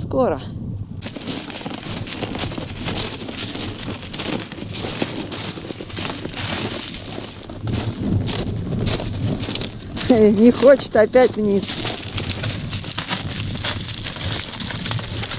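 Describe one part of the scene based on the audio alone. Horse hooves crunch on loose stones.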